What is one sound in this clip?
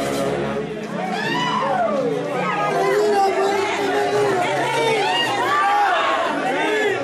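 A crowd of men and women cheer and shout nearby.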